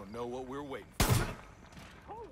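A rifle fires a single loud shot indoors.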